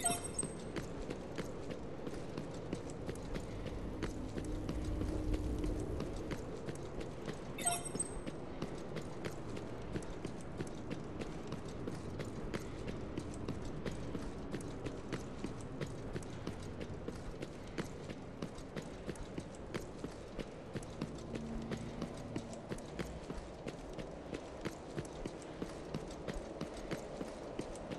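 Heavy metallic footsteps clank at a steady running pace.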